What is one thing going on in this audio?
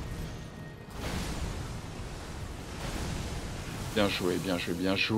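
A magic blast bursts with a rushing roar.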